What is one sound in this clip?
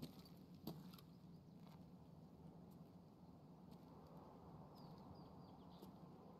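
Footsteps crunch slowly over rocky ground.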